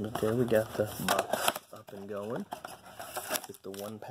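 A cardboard box is torn open.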